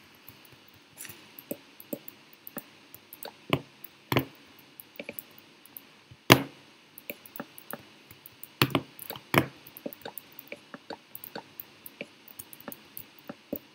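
Wooden blocks are set down with sharp, scattered knocks.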